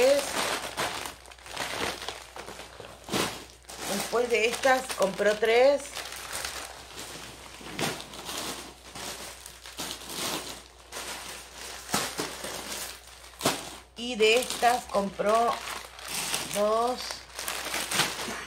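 Plastic packets crinkle and rustle in a woman's hands.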